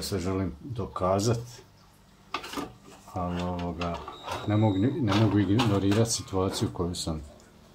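A metal box knocks and clatters as it is turned over on a wooden table.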